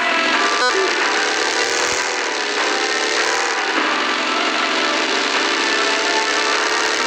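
A buggy engine drones steadily at speed.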